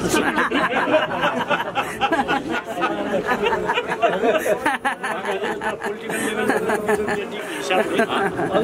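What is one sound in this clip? A middle-aged man speaks cheerfully close by.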